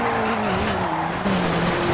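Tyres screech on tarmac as a car drifts.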